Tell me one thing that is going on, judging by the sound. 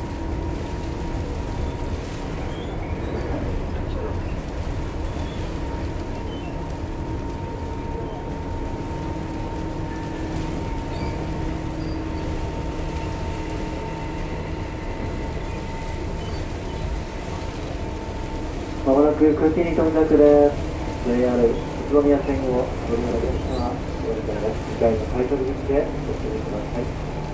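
An electric train rumbles slowly along the tracks with a steady motor hum.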